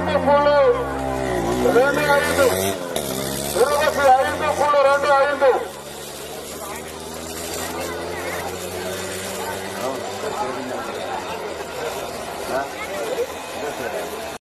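A large outdoor crowd chatters and shouts.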